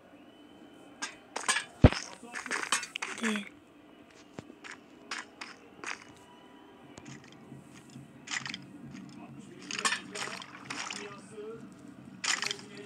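Footsteps tap on stone.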